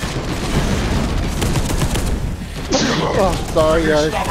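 A heavy gun fires rapid shots.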